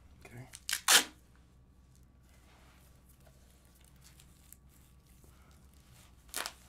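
Duct tape rips loudly off a roll in short bursts.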